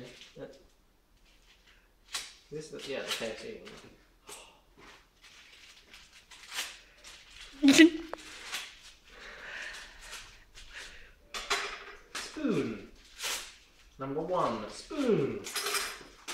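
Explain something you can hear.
Plastic wrapping rustles and crinkles in a young man's hands.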